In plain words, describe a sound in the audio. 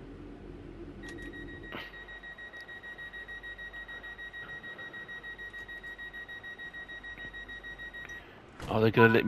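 A train's door warning beeps steadily.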